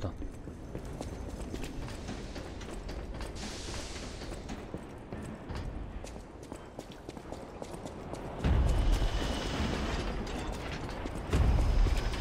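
Footsteps clatter quickly on a hard floor.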